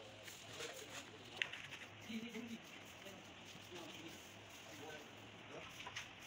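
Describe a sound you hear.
A sponge scrubs and wipes a plaster surface.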